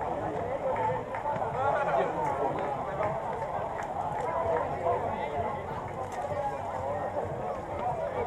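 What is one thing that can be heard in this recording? A group of children chatters while walking past.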